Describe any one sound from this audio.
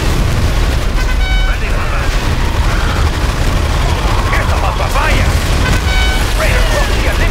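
A short electronic alert beeps.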